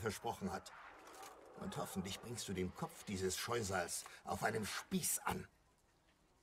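A man speaks calmly in a deep voice, close by.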